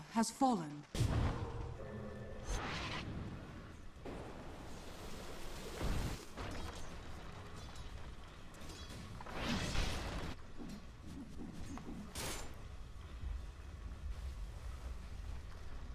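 Fighting sound effects clash and burst in short bursts.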